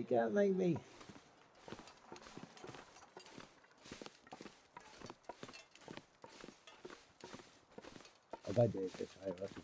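Footsteps thud on a wooden deck.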